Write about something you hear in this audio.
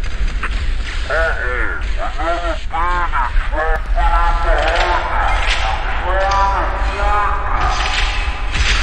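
A young man talks calmly into a nearby microphone.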